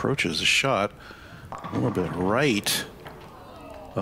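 Bowling pins clatter as a ball crashes into them.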